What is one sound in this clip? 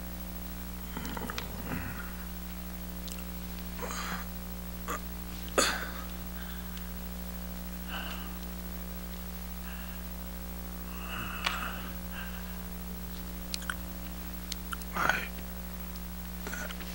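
A middle-aged man groans and moans in distress close by.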